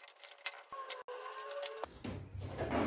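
A hand rubs and smooths tape on a wooden surface.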